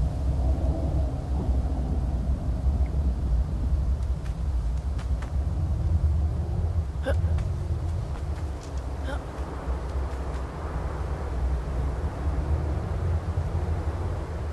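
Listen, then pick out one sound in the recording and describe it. Wind roars steadily outdoors.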